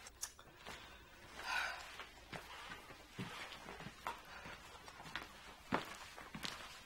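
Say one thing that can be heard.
A middle-aged woman speaks firmly and close by.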